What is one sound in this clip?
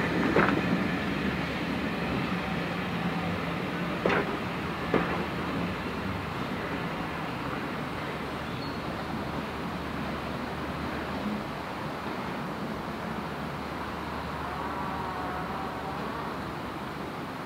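Train carriages rumble and clatter along the track, fading as they roll away.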